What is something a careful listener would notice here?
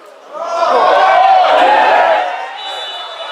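A crowd of spectators cheers loudly outdoors.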